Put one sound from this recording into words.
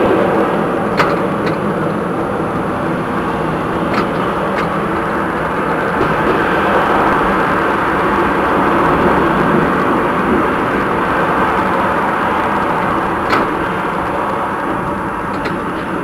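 Tram wheels click over rail joints.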